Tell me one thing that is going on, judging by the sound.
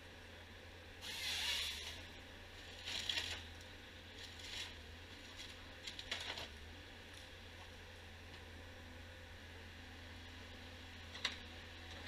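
Branches crack and snap as a harvester works through brush.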